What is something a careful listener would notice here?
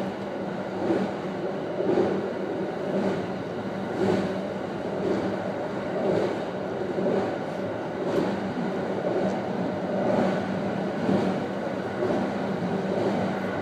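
An electric train rumbles along a steel bridge, heard from inside the cab.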